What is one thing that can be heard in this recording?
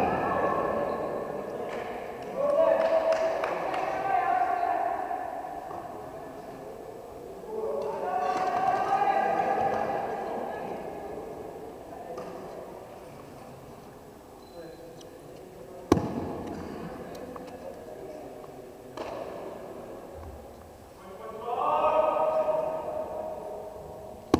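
Young people shout and call out across a large echoing hall.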